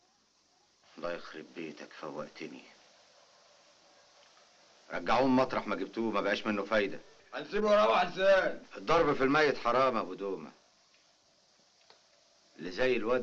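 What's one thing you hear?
A man speaks in a low, serious voice, close by.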